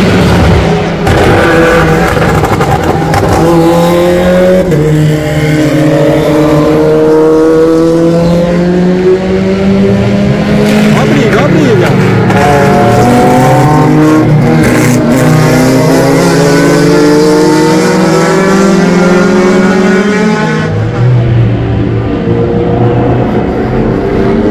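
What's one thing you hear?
A car engine revs up and down through the gears.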